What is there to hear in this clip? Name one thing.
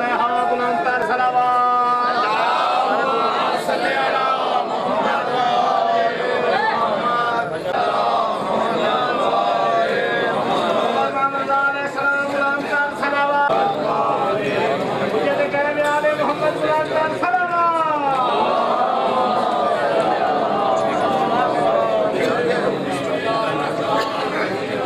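A man chants a mournful lament loudly through a loudspeaker, with echo.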